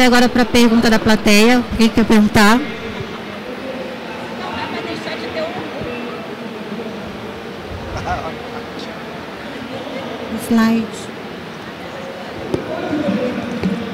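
An audience murmurs and chatters in the background.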